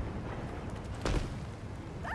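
A heavy body lands with a thud on pavement.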